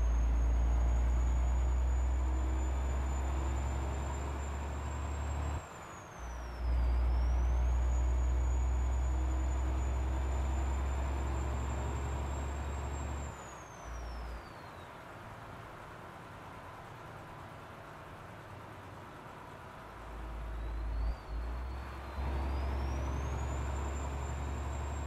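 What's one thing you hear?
A truck engine rumbles low and steady, dropping off briefly now and then.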